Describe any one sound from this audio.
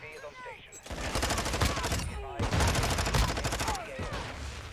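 An automatic rifle fires rapid bursts in a video game.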